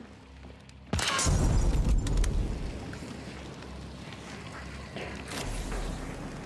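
Flames crackle and roar.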